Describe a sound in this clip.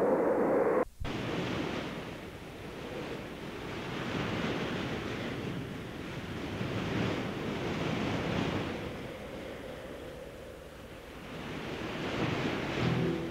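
Waves surge and crash against rocks.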